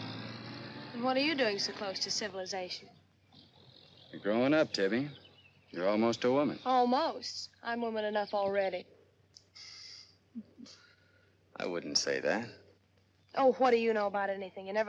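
A young man speaks calmly and cheerfully nearby.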